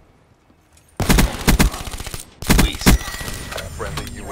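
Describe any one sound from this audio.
Gunfire rings out in loud, rapid bursts.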